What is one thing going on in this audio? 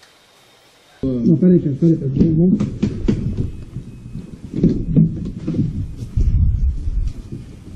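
Objects clatter and knock as a man rummages through a car.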